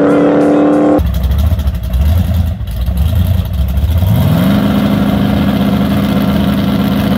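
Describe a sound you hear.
A truck engine rumbles and revs up.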